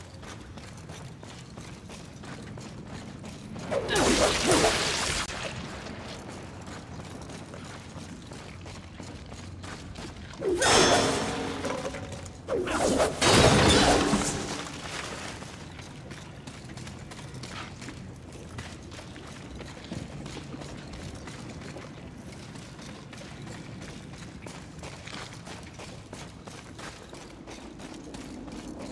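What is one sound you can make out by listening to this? Quick footsteps patter across a hard floor.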